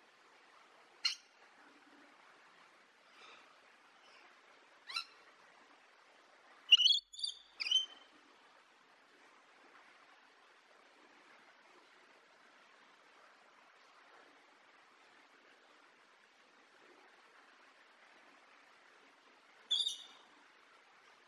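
A parrot squawks in short, shrill calls.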